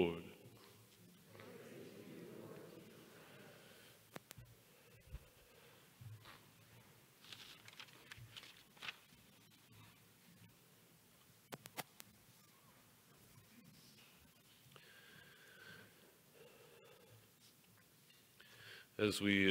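An older man speaks quietly through a microphone.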